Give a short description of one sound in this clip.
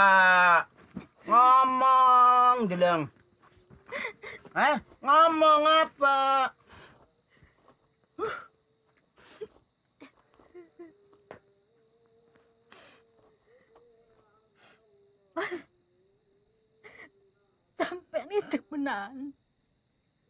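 A woman speaks tearfully and pleadingly, close by.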